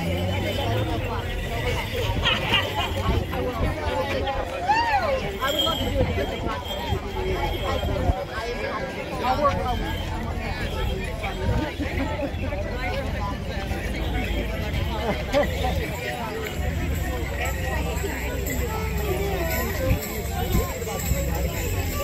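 A concertina plays a lively dance tune outdoors.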